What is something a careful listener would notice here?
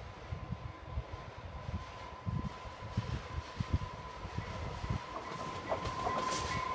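A passenger railcar rumbles along the track in the distance, slowly approaching.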